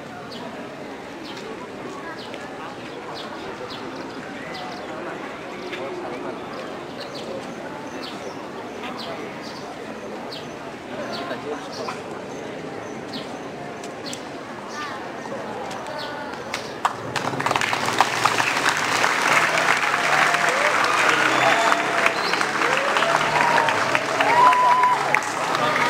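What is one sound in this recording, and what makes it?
A large crowd of young people murmurs and chatters outdoors, growing louder later on.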